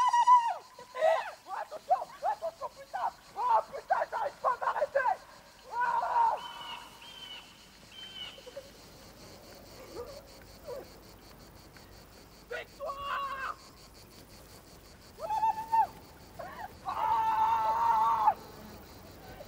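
A young woman calls out playfully outdoors.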